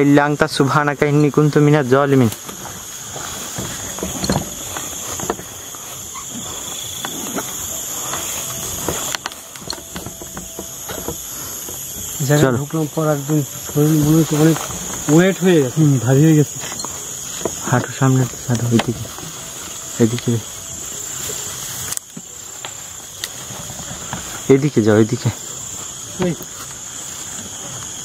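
Tall grass rustles as people push through it.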